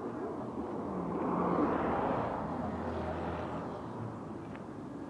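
A man talks loudly nearby, outdoors.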